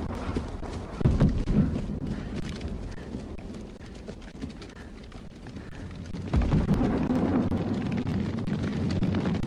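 A young man shouts nearby.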